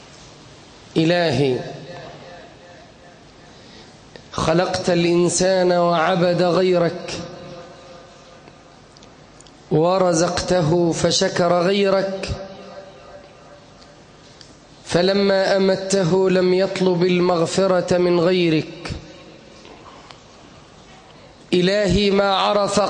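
A man chants loudly through a microphone in a large echoing hall, in long melodic phrases with pauses between them.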